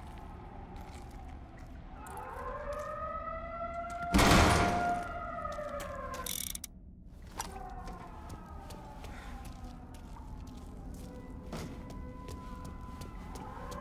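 Footsteps crunch over rubble.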